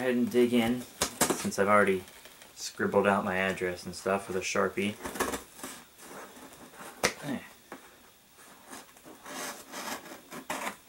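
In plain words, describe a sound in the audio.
Hands shift and scrape a cardboard box.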